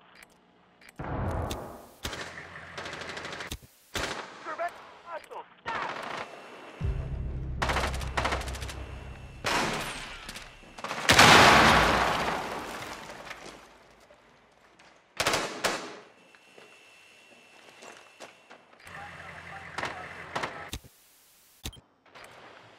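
Crackling static hisses in short bursts.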